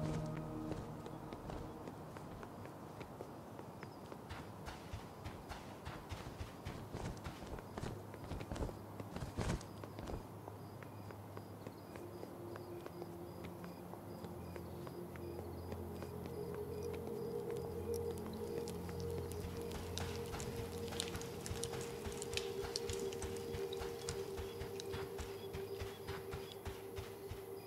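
Footsteps patter steadily across hard ground.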